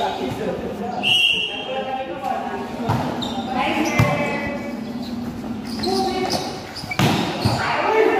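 Young people shout and cheer in a large echoing hall.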